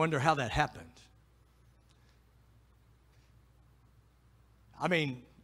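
A middle-aged man speaks calmly into a microphone, heard through loudspeakers in a large room.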